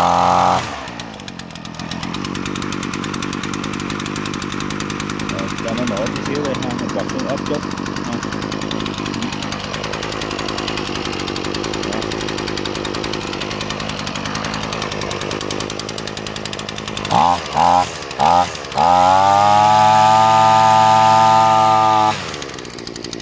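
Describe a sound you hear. A small two-stroke engine idles with a steady buzzing rattle.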